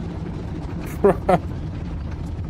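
A man laughs briefly and loudly into a close microphone.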